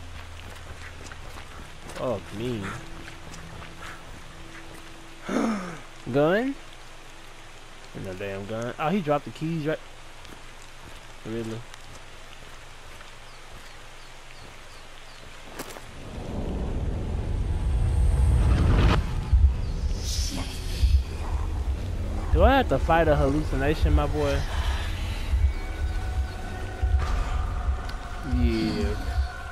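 Footsteps crunch on a snowy path.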